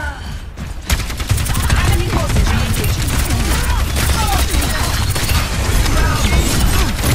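A game energy gun fires rapid bursts with loud blasts.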